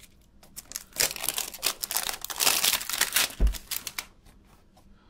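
Plastic wrapping crinkles and rustles as it is torn open.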